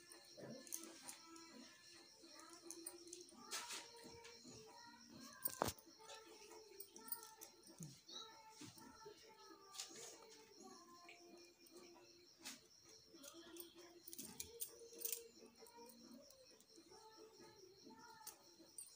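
Beaded cord rustles softly as hands handle it.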